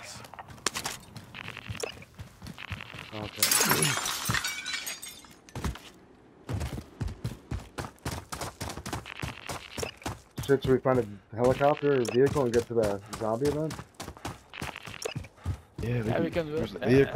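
Footsteps thud quickly on hard ground and gravel.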